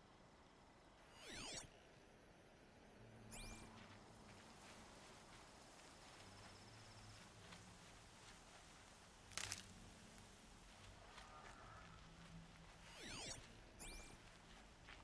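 An electronic scanning pulse sweeps with a shimmering whoosh.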